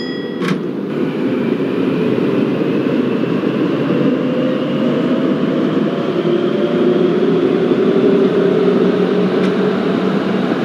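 A motor whines, slowly rising in pitch as a train speeds up.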